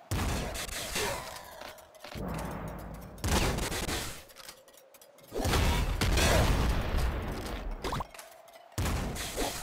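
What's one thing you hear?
Video game gunfire and explosions burst in quick succession.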